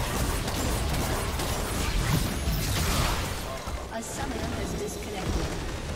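Spell and combat effects crackle and thud in a video game battle.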